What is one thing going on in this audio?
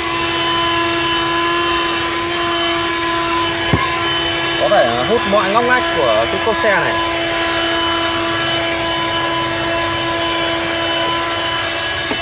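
A handheld vacuum cleaner hums steadily with a high motor whine.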